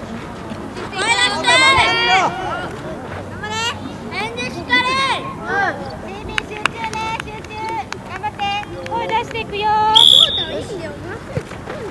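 Children shout loudly across an open field.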